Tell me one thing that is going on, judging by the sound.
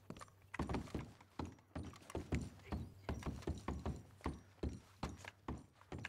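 Boots clomp up wooden stairs.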